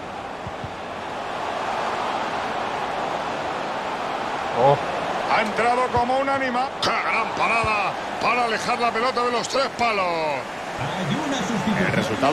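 A stadium crowd roars, swelling as play nears the goal.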